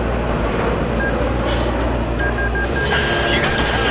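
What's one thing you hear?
A lock-on tone beeps in quick short bursts, then holds.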